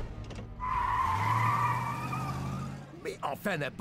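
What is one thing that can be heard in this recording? Tyres screech loudly as a car speeds past.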